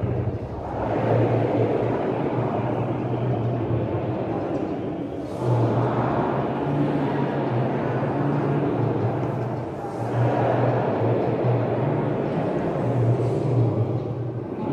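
A congregation of men and women sings a hymn together in a large echoing hall.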